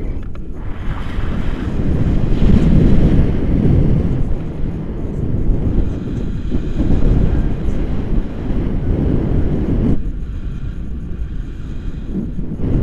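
Strong wind buffets a microphone loudly and steadily.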